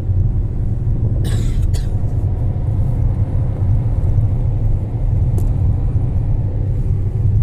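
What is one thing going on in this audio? A car's engine and tyres rumble low and steady from inside the cabin.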